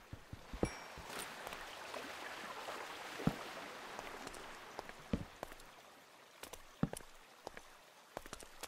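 Torches are set down with soft, dull thuds.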